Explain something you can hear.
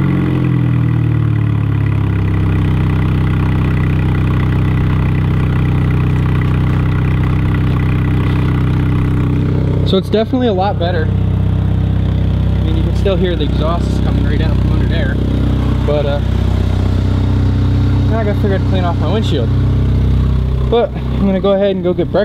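A car engine idles with a steady, deep exhaust rumble.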